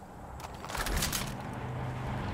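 Gun cartridges rattle as they are picked up.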